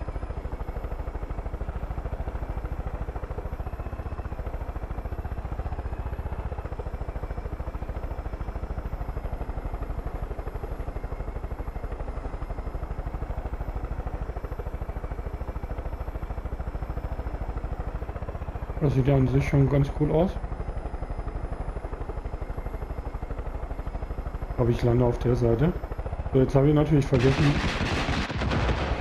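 A helicopter's rotor thuds steadily, heard from inside the cockpit.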